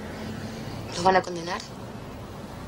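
A young woman speaks briefly and quietly, close by.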